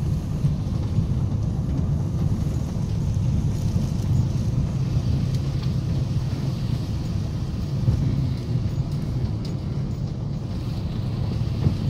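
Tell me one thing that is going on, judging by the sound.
Tyres rumble over a cobbled road.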